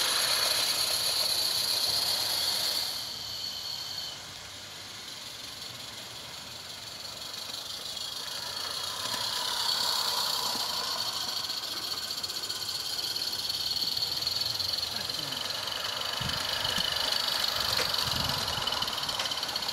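A small steam locomotive hisses and chuffs steadily close by.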